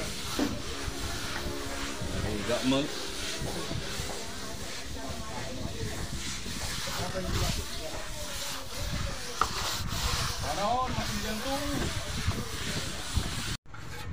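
A trowel scrapes wet plaster across a wall.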